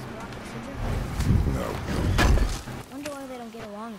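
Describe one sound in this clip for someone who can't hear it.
A heavy stone lid scrapes and thuds open.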